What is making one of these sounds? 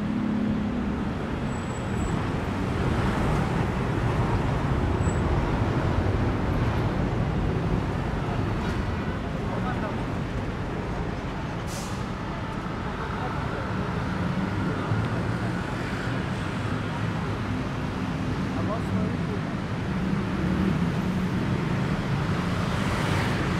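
A motorbike engine drones past.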